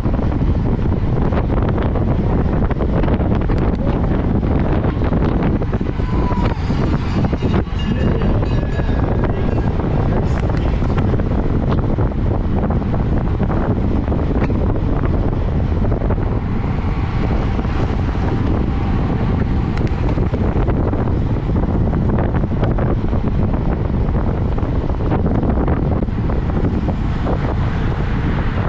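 Wind buffets loudly and steadily past a fast-moving bicycle.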